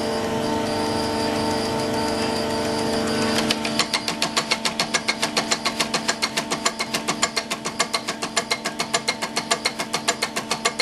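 A diesel pump test bench hums steadily.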